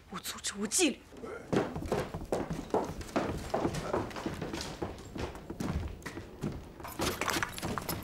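A young woman speaks firmly and clearly, close by.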